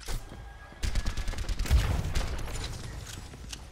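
A futuristic gun fires in rapid bursts.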